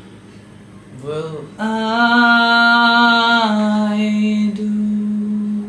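A young man sings a long held note close to a microphone.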